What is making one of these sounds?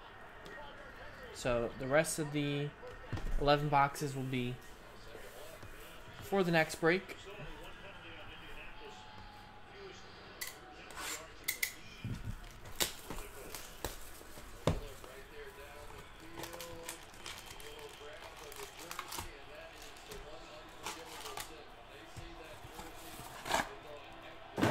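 Cardboard boxes and foil packs rustle and crinkle in hands.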